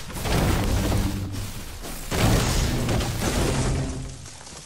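A pickaxe strikes a tree with repeated heavy thuds.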